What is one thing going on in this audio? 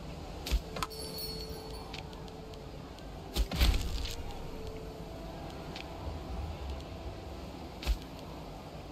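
Sharp interface clicks sound now and then.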